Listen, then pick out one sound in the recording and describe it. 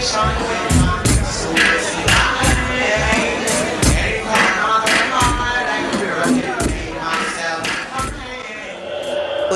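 Young men sing loudly into a microphone.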